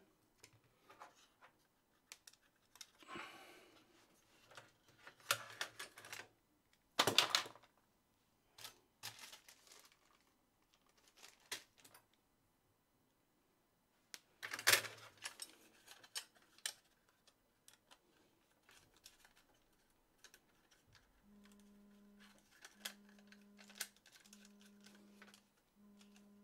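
Small metal parts click and clatter.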